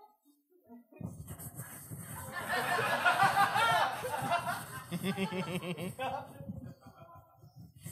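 An elderly man talks with animation into a microphone.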